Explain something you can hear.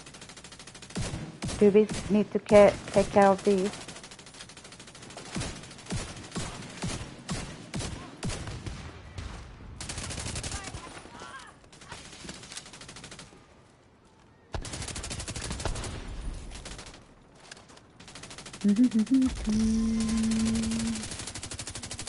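Rapid gunfire crackles in bursts.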